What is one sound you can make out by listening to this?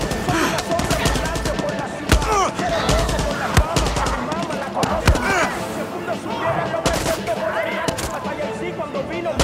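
Gunshots crack rapidly and repeatedly close by.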